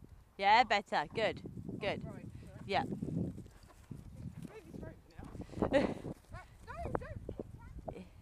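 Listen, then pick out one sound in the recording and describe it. A horse's hooves thud softly on grass as it canters past close by.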